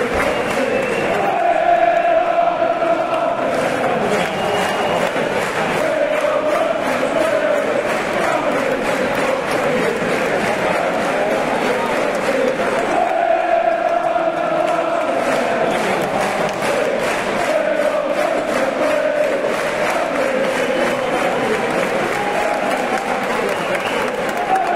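Fans clap along in rhythm.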